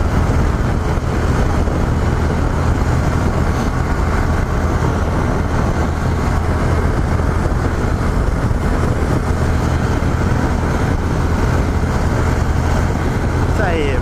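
Wind roars loudly and steadily past a microphone at speed.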